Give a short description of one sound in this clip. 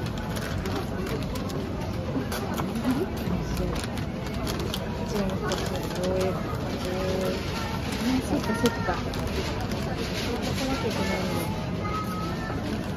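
Paper rustles and crinkles as a box is wrapped.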